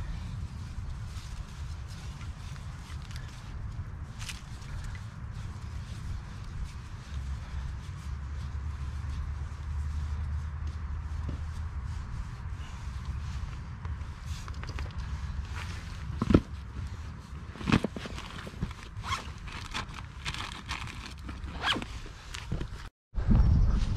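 Gear rustles and clicks as it is handled.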